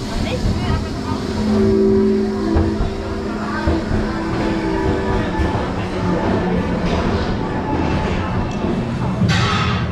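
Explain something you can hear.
People chatter nearby on a platform.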